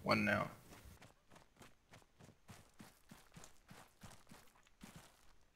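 Footsteps rustle through dry grass at a steady walking pace.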